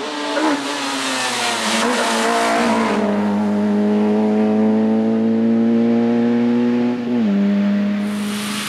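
A rally car engine roars loudly as it races up close and accelerates away, rising in pitch between gear changes.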